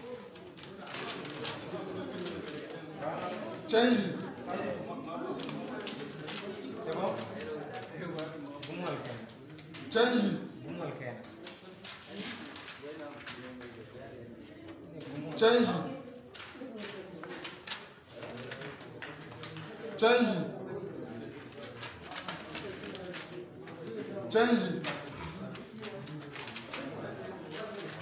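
Paper ballots rustle as they are handled.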